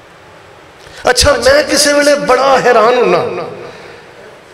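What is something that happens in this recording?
A middle-aged man speaks through a microphone over loudspeakers, chanting in a melodic, sustained voice.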